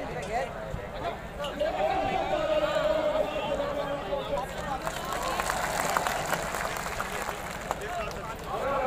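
A large outdoor crowd chatters and shouts all around.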